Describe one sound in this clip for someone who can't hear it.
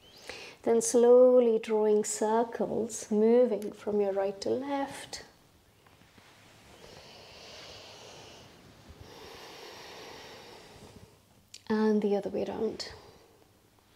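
A young woman speaks calmly and clearly close to a microphone.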